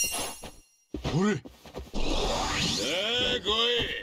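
A bright magical shimmer swells.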